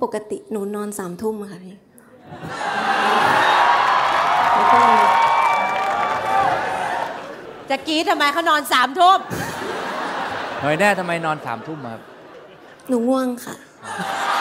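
A young woman speaks into a microphone, heard through loudspeakers.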